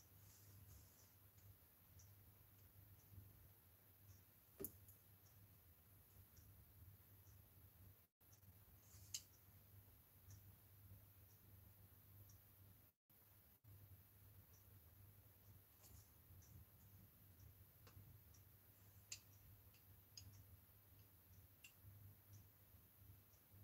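Small tools tap and click lightly on a hard surface.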